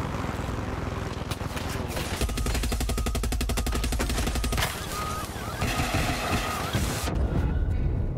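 A helicopter rotor thumps rapidly and steadily overhead.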